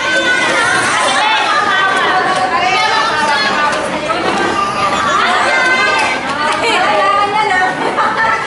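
Several people chatter and call out in a crowded room.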